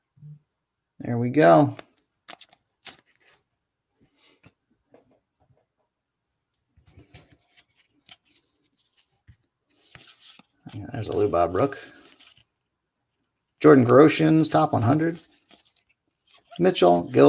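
Trading cards rustle and flick as they are sorted by hand.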